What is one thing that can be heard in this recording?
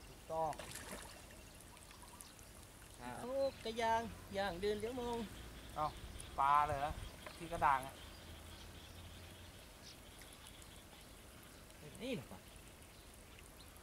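Water splashes and sloshes around men wading.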